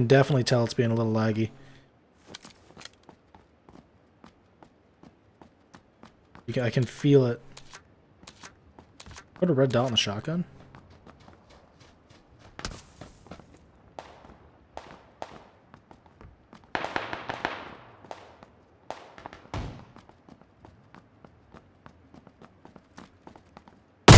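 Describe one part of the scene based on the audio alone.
Footsteps thud across a wooden floor indoors.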